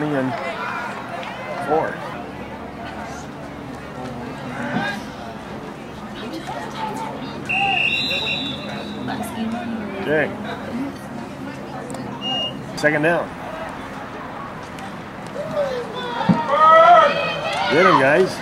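A crowd of spectators and players shouts and cheers outdoors.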